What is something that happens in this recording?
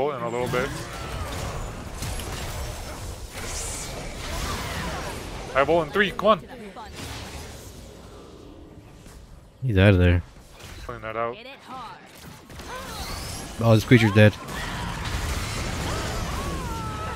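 Fantasy combat sound effects whoosh, crackle and burst as spells are cast.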